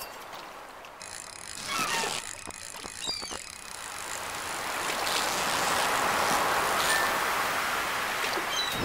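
A fishing reel clicks as a line is reeled in.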